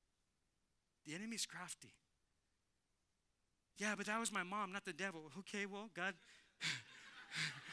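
A man speaks calmly to an audience through a microphone.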